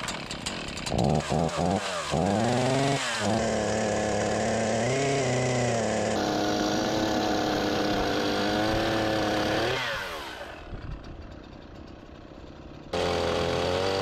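A chainsaw engine starts up, then runs loudly and revs.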